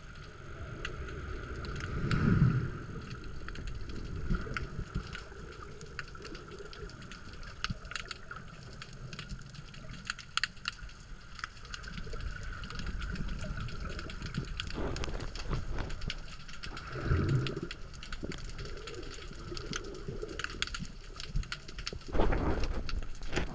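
Underwater, waves churn and bubble overhead with a muffled rumble.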